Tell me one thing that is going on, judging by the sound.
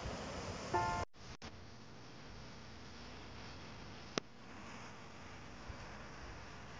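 Waves wash gently onto a beach outdoors.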